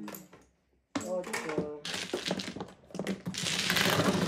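Mahjong tiles clack together as they are pushed.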